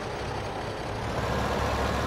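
A tractor engine revs louder as it drives off.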